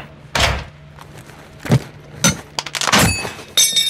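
A metal case's latches click open.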